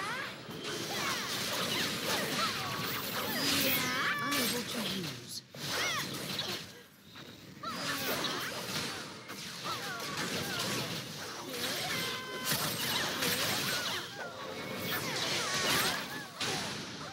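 Magic spells whoosh and burst in rapid bursts.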